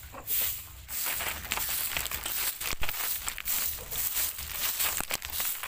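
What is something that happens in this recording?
Dry leaves rustle and crackle close by.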